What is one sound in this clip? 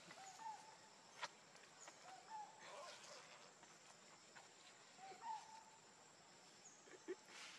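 A baby monkey suckles softly with faint smacking sounds.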